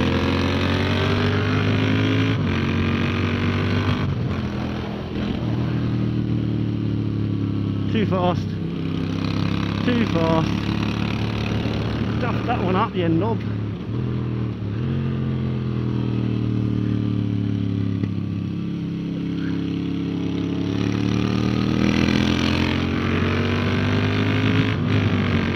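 Wind rushes past a fast-moving motorcycle.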